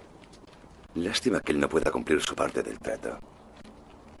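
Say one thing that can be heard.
A young man speaks quietly and wearily, close by.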